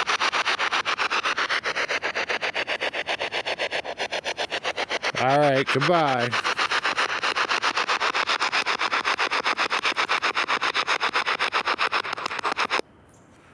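A handheld radio sweeps rapidly through stations in choppy bursts of static.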